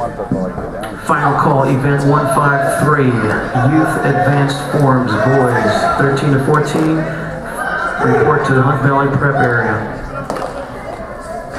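A man speaks loudly to a crowd in a large echoing hall.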